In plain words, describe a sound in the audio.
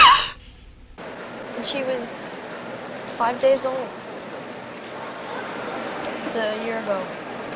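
A man and a woman talk quietly.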